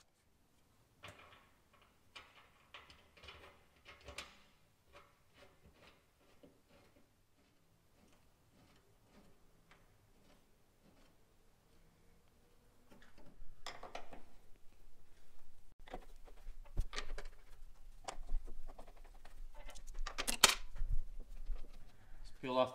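Metal parts click and clank as a man works by hand.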